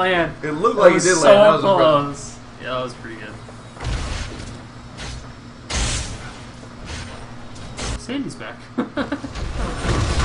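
A young man talks excitedly into a microphone.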